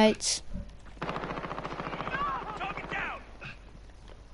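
Automatic gunfire rattles in quick bursts.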